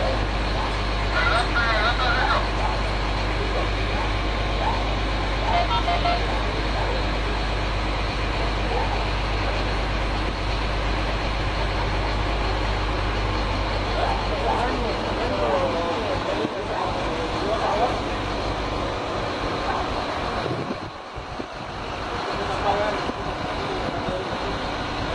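A crowd of men talk and shout outdoors.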